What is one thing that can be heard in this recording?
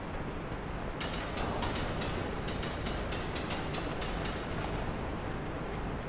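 Footsteps scrape on stone.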